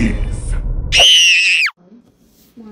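A man shouts excitedly.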